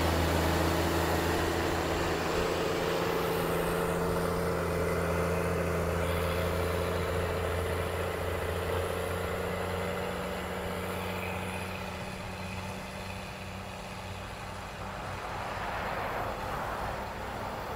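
A diesel engine rumbles steadily close by and slowly grows fainter.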